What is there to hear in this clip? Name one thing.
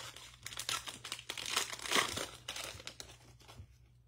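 A foil card pack crinkles and tears open.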